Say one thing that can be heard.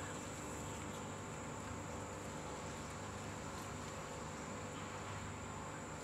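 A large lizard's claws scrape softly over dirt and dry leaves.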